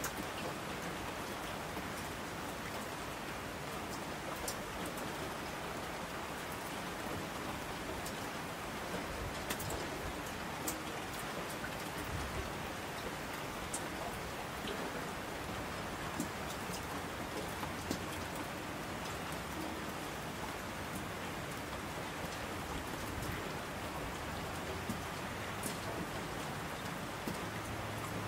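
Rushing streams roar down the slopes.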